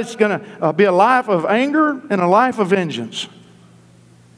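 A man preaches with animation through a microphone in a large hall.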